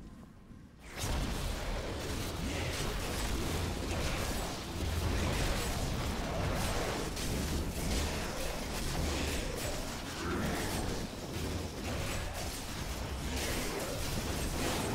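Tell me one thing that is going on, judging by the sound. Magic spells crackle and blast in rapid bursts.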